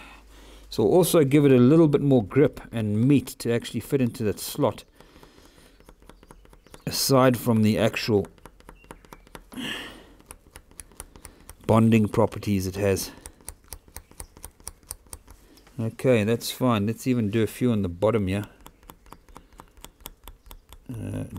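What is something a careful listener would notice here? A small file scrapes rapidly back and forth against a thin hard edge.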